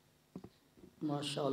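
A man begins speaking through a microphone.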